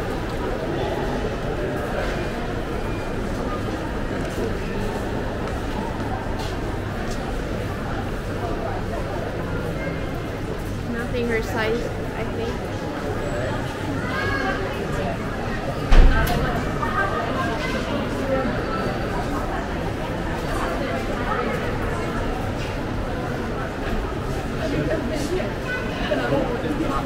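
A crowd of shoppers murmurs and chatters in a large echoing indoor space.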